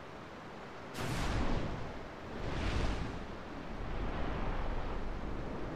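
A fireball whooshes through the air.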